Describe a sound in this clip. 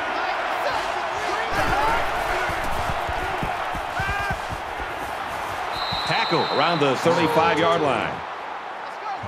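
A large stadium crowd roars loudly, then quiets down.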